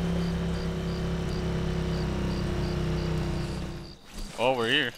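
A small motor engine drones steadily.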